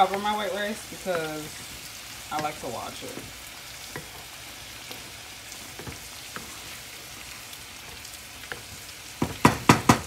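A wooden spoon scrapes and stirs in a metal pot.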